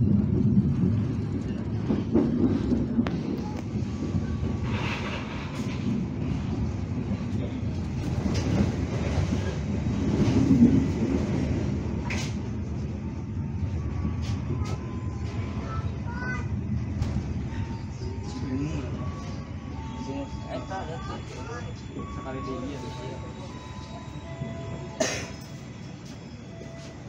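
A train rumbles steadily along the rails, slowly quietening.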